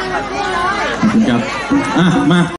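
A man speaks loudly through a loudspeaker.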